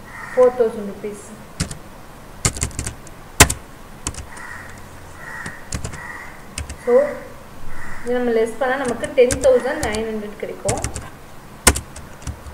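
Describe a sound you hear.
Computer keys click.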